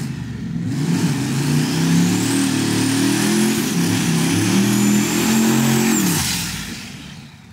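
Tyres screech as they spin on the road.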